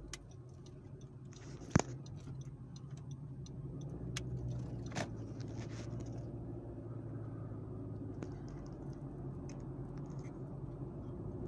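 A car engine hums steadily from inside the car as it drives.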